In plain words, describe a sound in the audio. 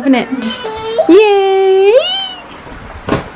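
A baby squeals loudly close by.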